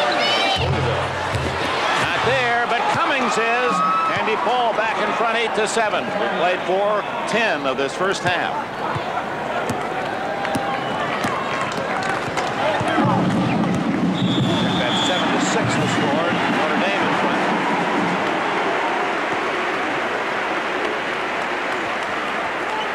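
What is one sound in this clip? A large crowd cheers and roars in an echoing arena.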